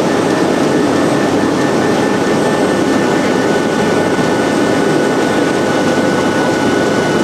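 An industrial paper sheeter runs with a steady mechanical whir.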